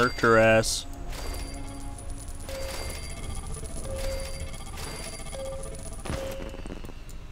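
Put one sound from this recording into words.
Bright chiming tones ring out as coins are collected.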